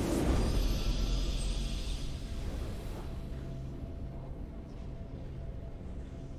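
A triumphant fanfare plays and slowly fades.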